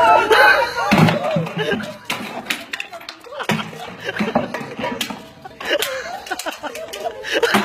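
Wooden sticks whack a plastic bucket with sharp cracks.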